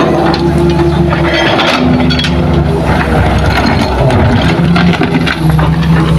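Dirt and rocks thud and rattle as they are dumped into a truck bed.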